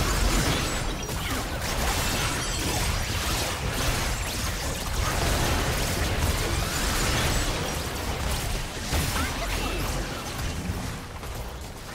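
Heavy blows thud and boom.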